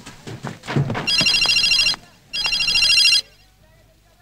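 A phone rings with a beeping tone.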